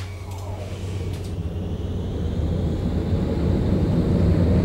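A tram's wheels rumble louder and louder on the rails as it pulls away.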